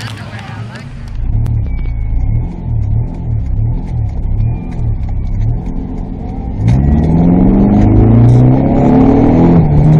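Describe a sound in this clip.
A car engine roars and revs up as the car accelerates, heard from inside.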